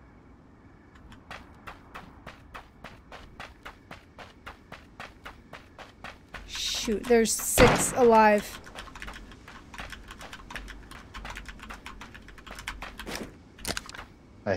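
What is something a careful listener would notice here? Footsteps run quickly over grass and dirt.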